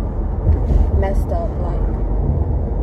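A young woman talks briefly, close by.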